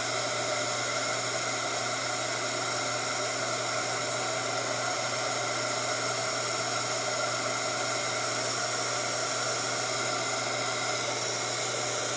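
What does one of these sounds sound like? A heat gun blows with a steady, loud whirring roar.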